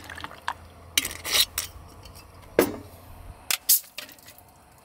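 Ice cubes clink against a glass.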